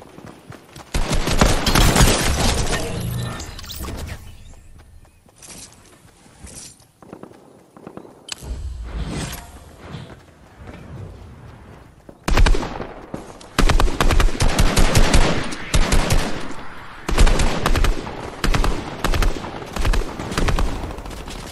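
Gunfire from a game rattles in rapid bursts.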